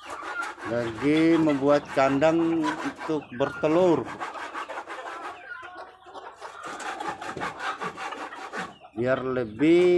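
Ducks and chickens cluck and call nearby.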